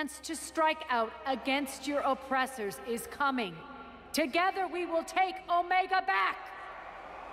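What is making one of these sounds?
A woman shouts a rousing speech in a large echoing hall.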